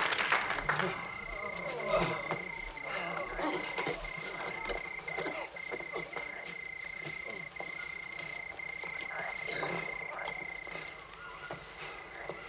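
A man speaks with alarm, close by.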